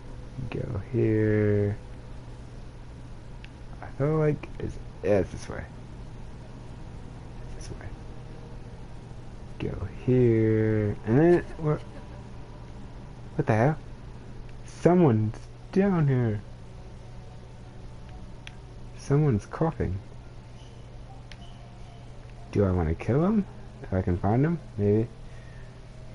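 A man talks into a microphone in short bursts, close up.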